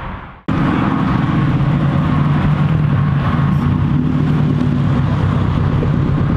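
A car engine revs loudly and rumbles as the car drives close by.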